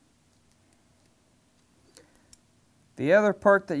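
Small metal parts click softly as they are handled.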